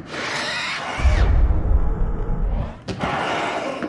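A heavy body thuds and crashes to the floor.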